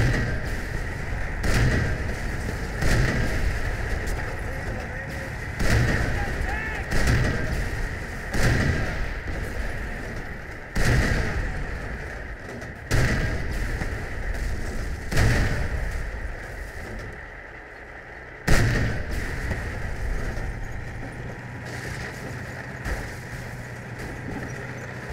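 A tank engine rumbles and treads clank steadily.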